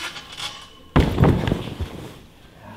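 A gymnast lands with a heavy thud on a padded mat.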